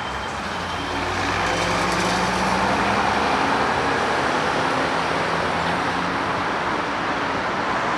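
A bus engine rumbles as it drives past close by.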